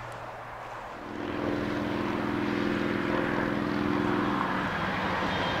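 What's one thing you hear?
A train horn blares in a long steady blast from a distance.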